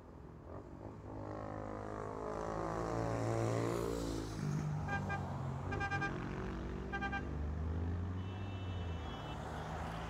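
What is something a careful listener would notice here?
A vehicle approaches with a rising engine rumble.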